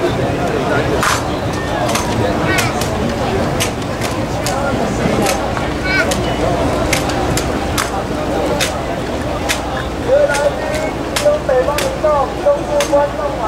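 Rifles slap and click sharply as soldiers drill in unison outdoors.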